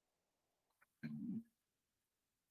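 A young woman murmurs briefly and quietly into a microphone.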